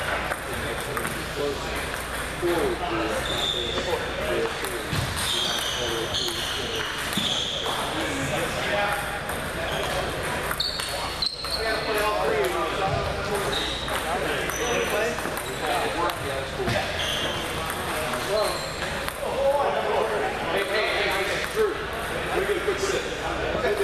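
Table tennis balls click against paddles and tables in a large echoing hall.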